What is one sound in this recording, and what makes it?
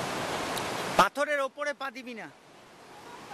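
A woman calls out loudly nearby.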